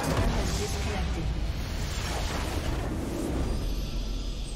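A game's base explodes with a loud rumbling blast.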